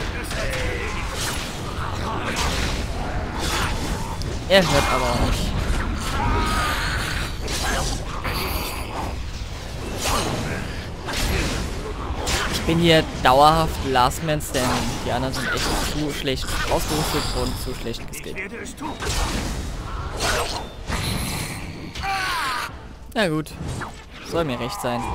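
Swords clash and strike in a melee fight.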